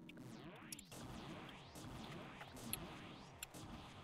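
Game laser beams blast and roar.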